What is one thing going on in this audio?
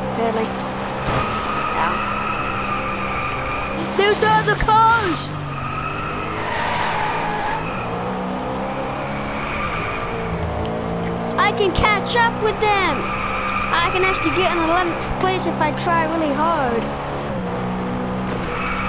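A car engine roars steadily, shifting up and down through gears.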